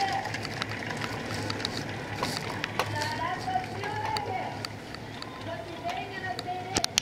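Oars splash and knock rhythmically as rowing crews pull through the water.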